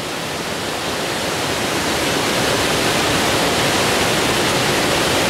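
Water rushes steadily over a weir, close by.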